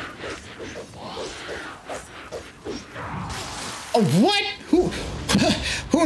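Blades swish and clash in a fight.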